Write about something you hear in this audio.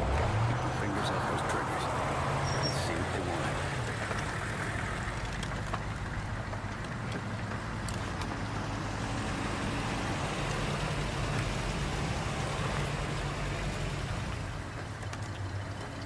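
Engines of several quad bikes idle with a low, steady rumble.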